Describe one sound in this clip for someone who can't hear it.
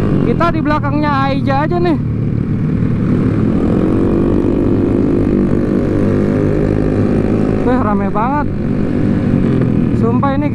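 A motorcycle engine revs up sharply in quick bursts.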